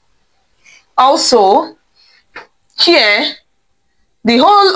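A woman speaks clearly and calmly close by, explaining.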